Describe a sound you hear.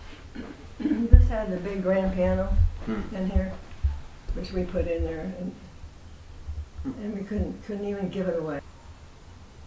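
An elderly woman talks with animation close by.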